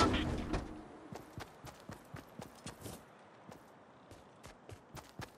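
Footsteps patter quickly and lightly on the ground.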